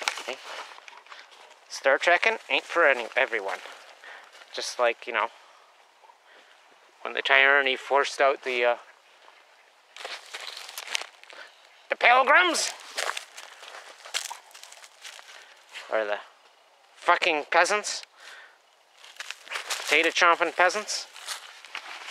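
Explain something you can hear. Dogs' paws rustle through dry leaves and crunchy snow nearby.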